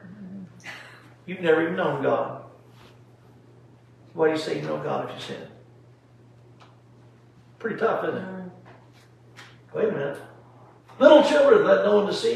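An elderly man speaks slowly and deliberately, with pauses between phrases.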